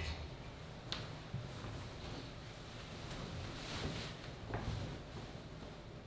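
A coat rustles as a man puts it on.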